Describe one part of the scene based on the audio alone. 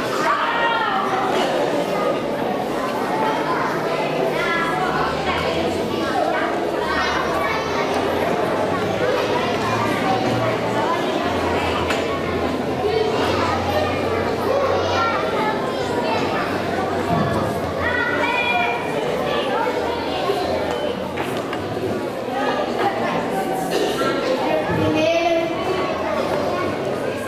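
A crowd of adults and young children chatters in a large echoing hall.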